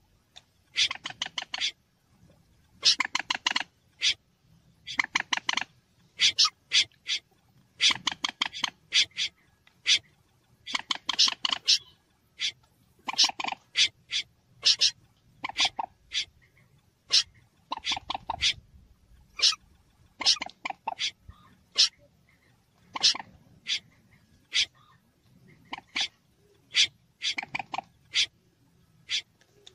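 A bird calls in rapid bursts of sharp clucking notes.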